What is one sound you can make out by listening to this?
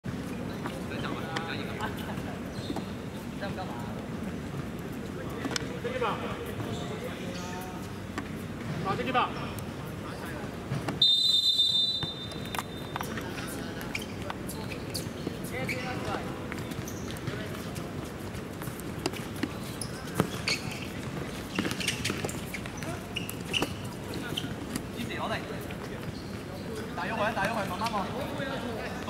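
Men shout and call out across an open outdoor court.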